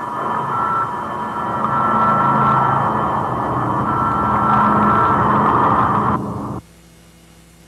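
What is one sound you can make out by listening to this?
A large fire roars loudly.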